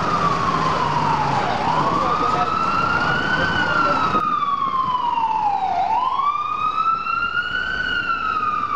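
Traffic rumbles along a busy street.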